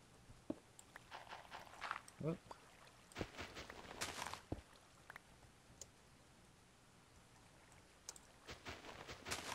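Dirt blocks crunch repeatedly as they are dug and placed.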